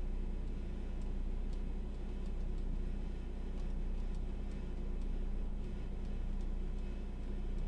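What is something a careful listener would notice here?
Plastic keyboard parts click and rattle faintly as hands handle them.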